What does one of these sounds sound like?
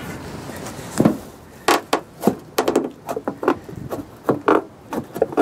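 Something taps and knocks on a thin metal sheet.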